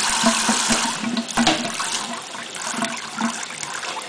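A parrot flutters and shakes its wet feathers.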